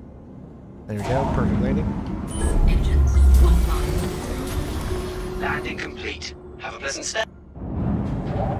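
A spacecraft engine rumbles deeply and then winds down.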